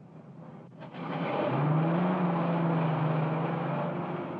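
A car engine starts and runs with a steady hum.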